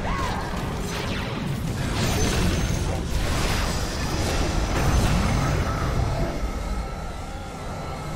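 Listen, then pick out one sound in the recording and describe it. Magic blasts and impacts crackle and boom in a fast-paced battle.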